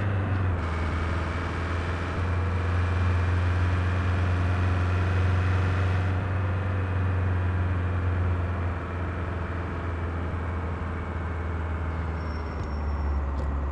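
A car engine hums steadily at a low pitch while driving.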